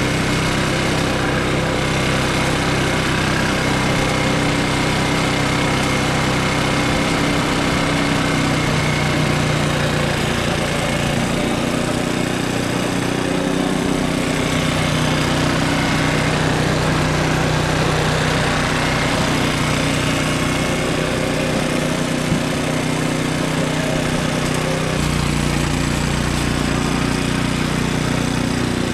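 A petrol lawnmower engine runs loudly and steadily, changing pitch now and then.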